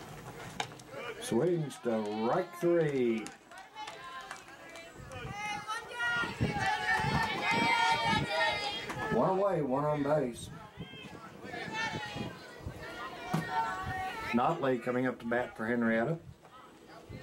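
Young women cheer and chant outdoors.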